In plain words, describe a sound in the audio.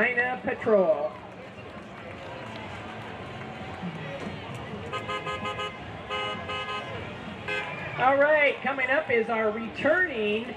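A crowd of spectators chatters and cheers outdoors nearby.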